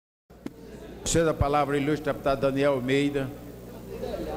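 An elderly man speaks firmly into a microphone.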